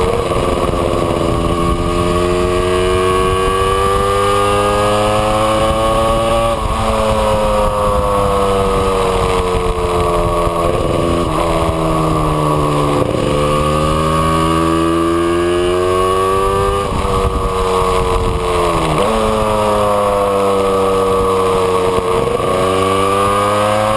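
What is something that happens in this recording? A Yamaha RZ350 two-stroke twin motorcycle revs up through the gears and shifts.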